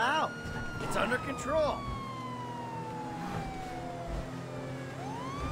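A police siren yelps in short bursts.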